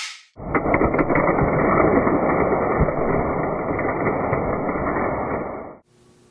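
Metal toy parts clatter and bang onto a wooden floor.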